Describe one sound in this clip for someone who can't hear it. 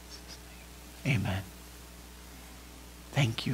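A middle-aged man speaks calmly in short bursts.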